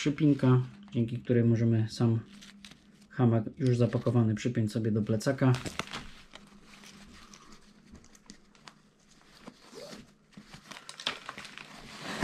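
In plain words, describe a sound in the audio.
Fabric rustles as it is handled.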